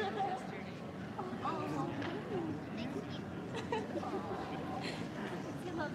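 An audience murmurs and chatters in a large echoing hall.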